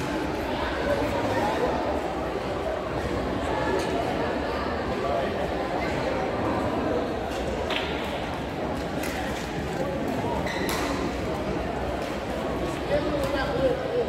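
A steady murmur of many voices echoes around a large hall.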